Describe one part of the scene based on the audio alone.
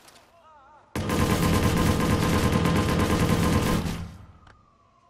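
A rifle fires a long, rapid burst of gunshots close by.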